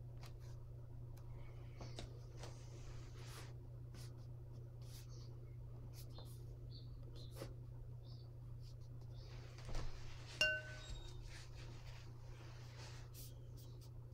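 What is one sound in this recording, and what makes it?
A brush softly brushes across paper.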